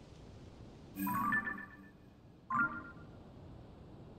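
Soft chimes ring as a viewing scope opens and closes.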